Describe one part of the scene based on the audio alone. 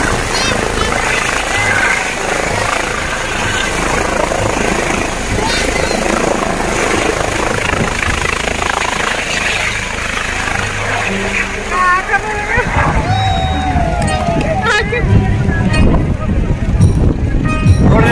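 Strong wind from the rotor blasts past.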